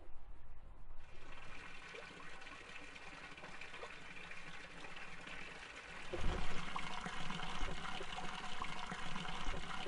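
Water pours from a pump spout and splashes into a stone trough.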